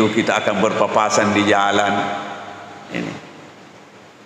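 An elderly man speaks calmly into a microphone, heard in a reverberant hall.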